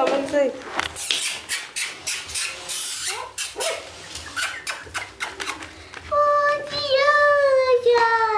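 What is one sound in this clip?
Puppies scratch and shuffle on rustling paper.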